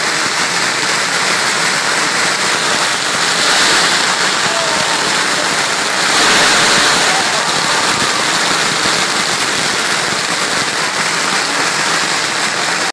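A large crowd cheers and shouts loudly outdoors.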